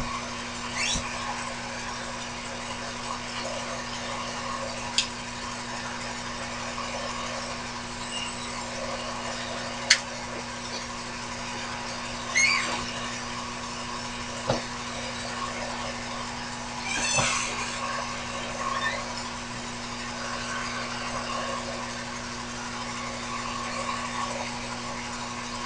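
A small lathe motor hums steadily.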